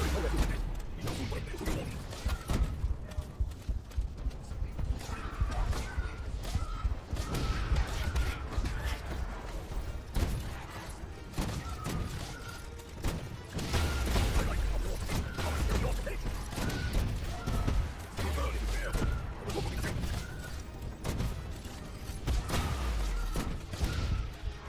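A gun fires in rapid bursts with deep booming blasts.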